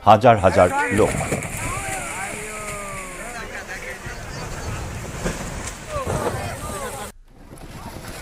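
River water rushes past.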